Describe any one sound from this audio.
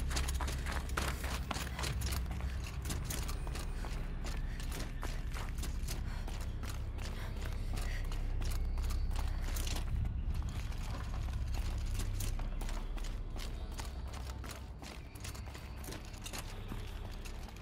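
Footsteps and handholds thud and scrape on rock during a climb.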